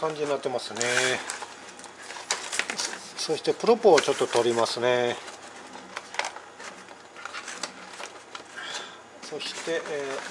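Cardboard scrapes and rustles as a box is handled.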